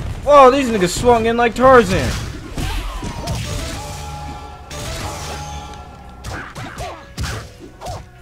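Punches and kicks land with sharp thuds in a fight.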